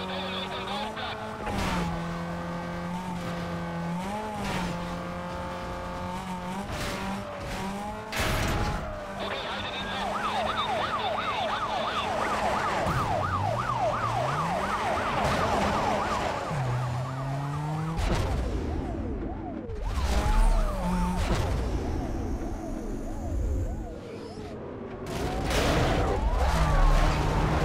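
A car engine roars and revs up and down at high speed.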